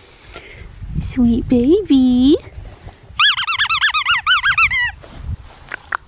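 A puppy whines and yelps in high squeals.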